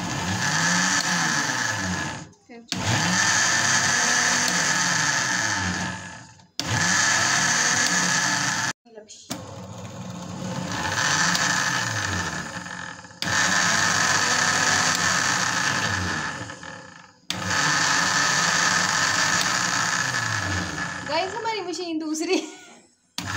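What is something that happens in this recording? A blender motor whirs loudly in short bursts, stopping and starting again.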